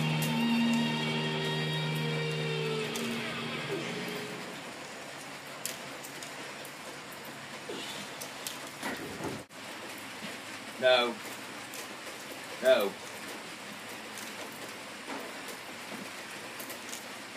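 A metal barbell clinks and rattles.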